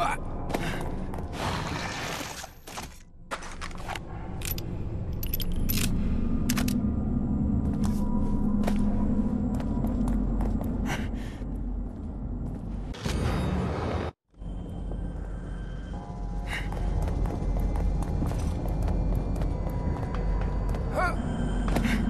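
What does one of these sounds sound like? Footsteps crunch over rubble and debris.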